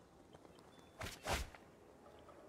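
Cards swoosh quickly into place with a soft whoosh.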